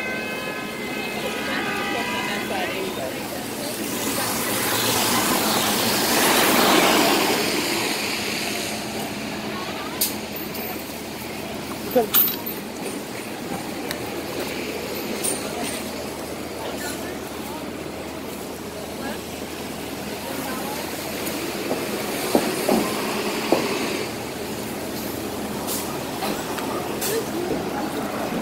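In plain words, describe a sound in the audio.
Busy street noise hums steadily outdoors.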